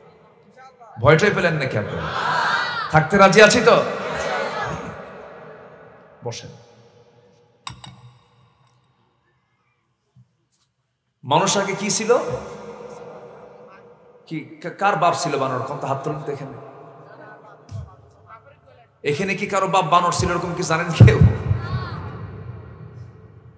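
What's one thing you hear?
A man preaches forcefully into a microphone, heard through loudspeakers in a reverberant space, with long pauses between phrases.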